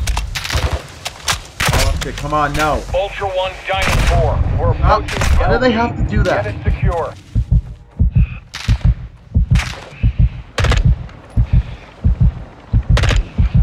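Rifle shots crack one after another.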